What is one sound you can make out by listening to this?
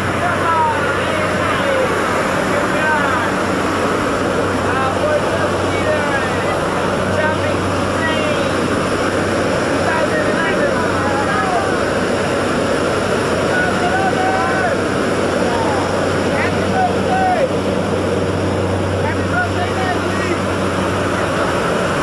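A group of men cheer and whoop in the cabin.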